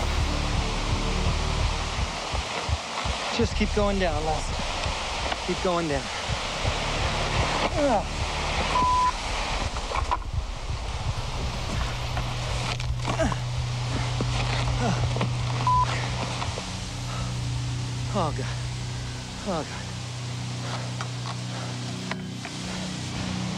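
Clothing and branches rustle against the microphone.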